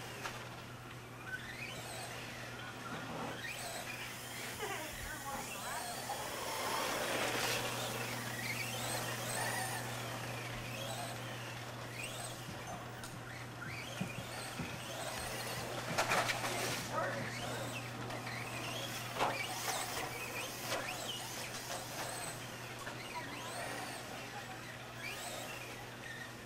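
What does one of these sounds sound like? A small electric toy car whines as it races over dirt.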